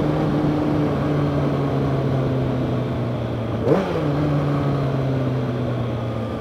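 A motorcycle engine hums steadily up close, briefly revving.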